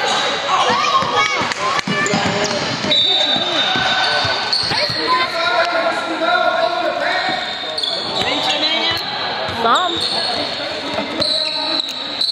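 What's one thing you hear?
A basketball is dribbled on a hardwood floor.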